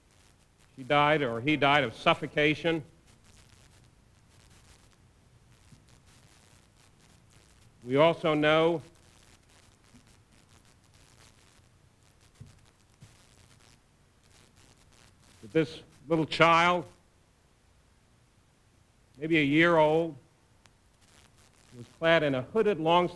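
A middle-aged man speaks through a microphone in short, measured bursts with long pauses.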